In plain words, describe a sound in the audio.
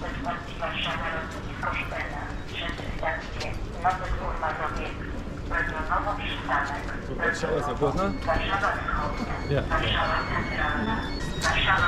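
A train hums steadily while standing at a platform.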